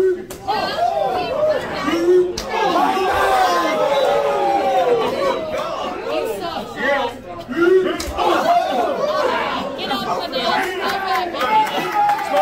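A crowd shouts and cheers loudly nearby.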